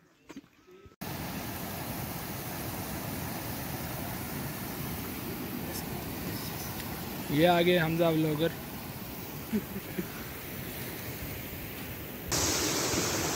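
A shallow stream rushes over stones nearby.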